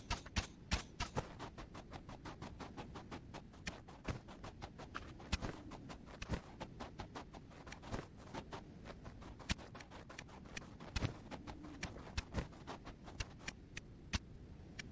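Gunshots fire in quick, sharp bursts.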